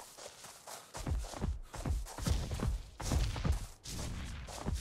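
A large creature thuds heavily close by.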